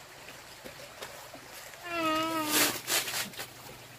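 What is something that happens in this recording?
A shovel scrapes and slaps wet cement.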